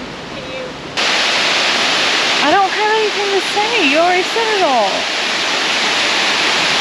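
A waterfall rushes steadily close by.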